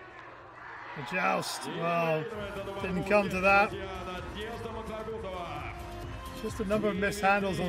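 A crowd cheers and claps in a large arena.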